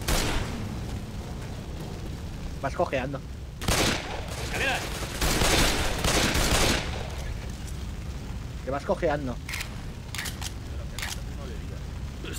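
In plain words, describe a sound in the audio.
Pistols fire in sharp, quick shots.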